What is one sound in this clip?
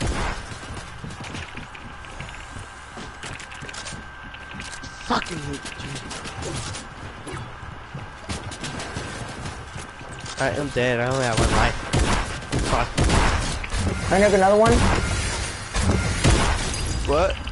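Shotguns fire in sharp, quick bursts close by.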